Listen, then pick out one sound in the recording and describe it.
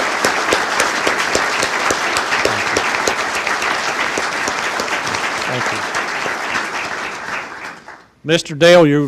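An audience applauds warmly.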